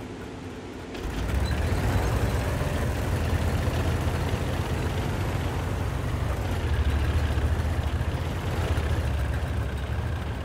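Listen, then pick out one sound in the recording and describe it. A tank engine roars loudly as the tank drives off.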